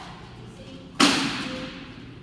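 A seesaw board bangs down loudly onto the floor.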